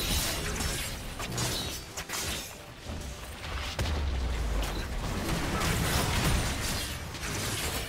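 Magic spells crackle and blast in a video game battle.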